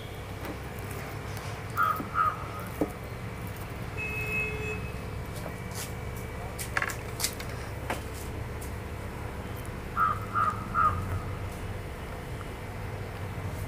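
Wet, sauce-covered meat squelches softly as hands mix and lift it from a bowl.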